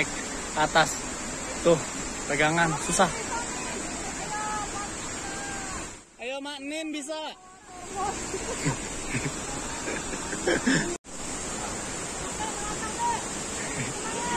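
Several men and women talk and call out to each other nearby outdoors.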